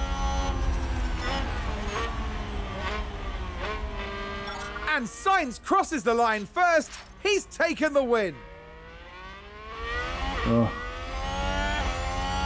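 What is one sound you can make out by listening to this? A racing car engine roars at high revs, rising and falling in pitch with quick gear changes.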